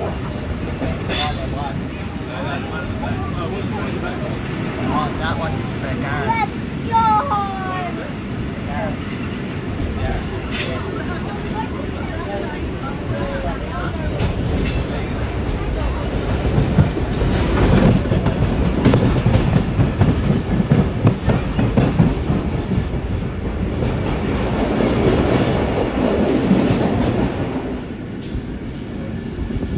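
A train rumbles and clatters along the tracks at speed.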